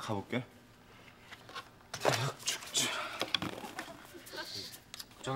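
A young man speaks in a strained, groaning voice close by.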